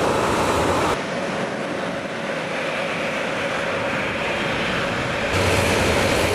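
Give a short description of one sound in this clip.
A jet airliner roars overhead as it climbs away.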